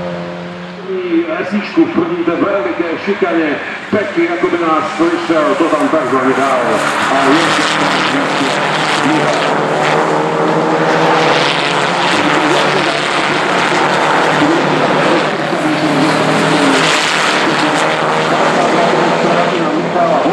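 Racing car engines rev up and down through gear changes.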